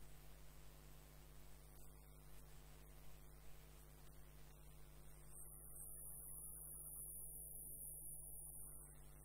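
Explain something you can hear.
A wood lathe motor hums.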